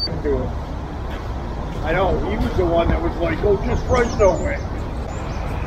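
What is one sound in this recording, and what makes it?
A man talks outdoors nearby.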